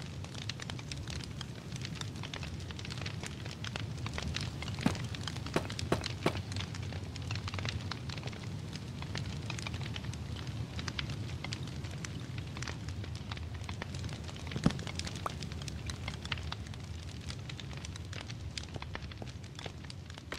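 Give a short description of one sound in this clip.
A campfire crackles softly throughout.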